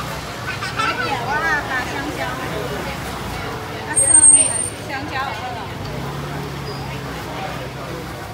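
A metal spatula scrapes across a hot griddle.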